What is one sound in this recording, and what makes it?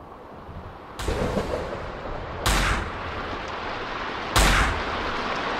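A revolver fires loud shots that ring out.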